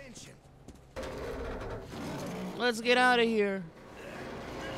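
A metal crank grinds and rattles as it turns.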